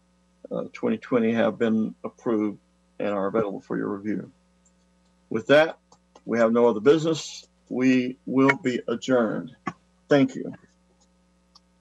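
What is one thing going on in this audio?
An older man speaks calmly through an online call microphone.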